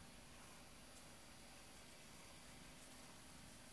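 A hand rubs softly against a cat's fur.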